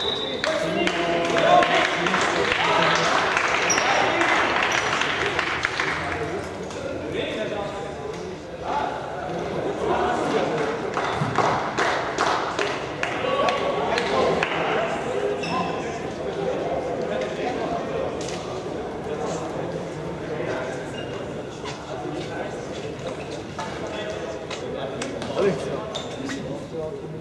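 Sticks clack against a ball and the floor.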